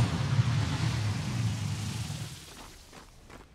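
A loud magical whoosh roars and fades away.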